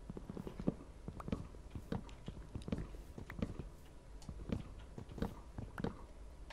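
Soft, dull thuds repeat quickly as something is chopped at over and over.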